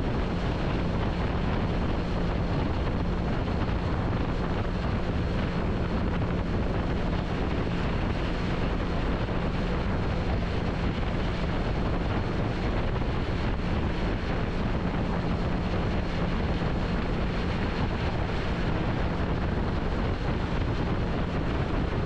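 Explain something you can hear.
Wind rushes loudly past a motorcycle at highway speed.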